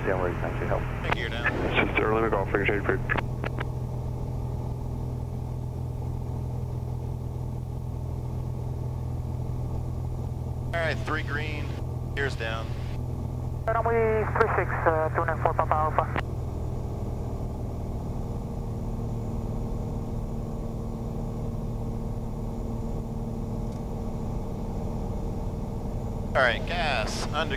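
A middle-aged man talks calmly through a headset microphone, heard as over a radio.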